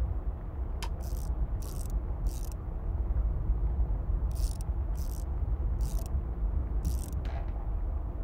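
An oven dial clicks in short repeated blips as it is turned.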